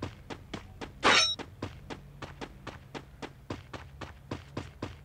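Quick footsteps run over grass at a steady pace.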